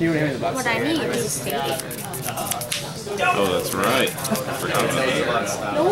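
Playing cards shuffle and riffle between fingers.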